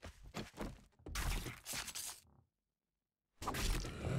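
A pickaxe strikes rock with sharp knocks.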